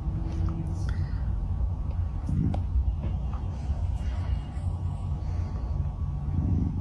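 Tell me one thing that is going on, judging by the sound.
A young woman murmurs and giggles softly close to a microphone.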